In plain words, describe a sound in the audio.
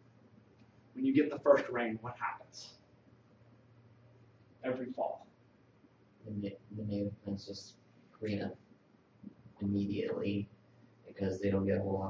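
A man lectures calmly through a microphone, with pauses.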